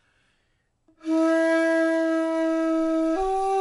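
A metal flute plays a long steady note, then steps up to a higher one.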